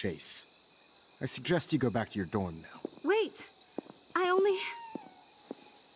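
A man speaks sternly and calmly.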